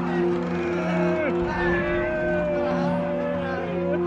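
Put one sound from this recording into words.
A middle-aged man cries out in anguish.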